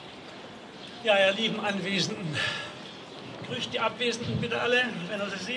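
An elderly man speaks calmly into a microphone over loudspeakers.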